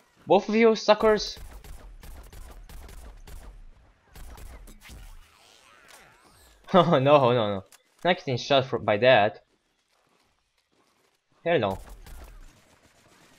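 Cartoonish weapon shots fire in quick bursts.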